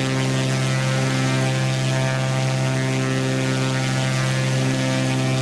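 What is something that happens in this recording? A single propeller engine drones steadily.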